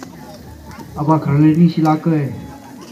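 A man speaks loudly through a loudspeaker outdoors.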